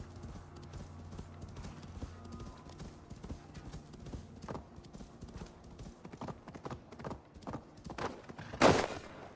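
A horse gallops through crunching snow.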